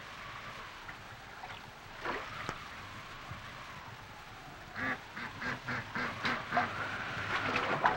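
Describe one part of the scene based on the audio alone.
Water splashes as a child climbs out of the water into a boat.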